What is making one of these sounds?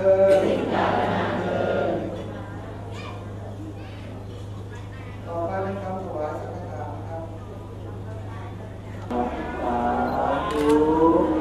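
Men chant together in a low, steady drone.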